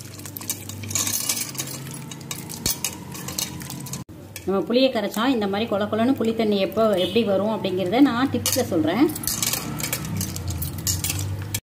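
Wet food squelches as hands squeeze it in water.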